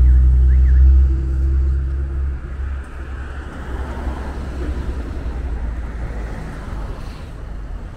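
A bus engine idles close by with a low rumble.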